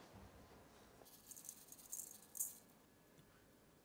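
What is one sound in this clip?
A spoon mixes rice in a bowl with soft scraping.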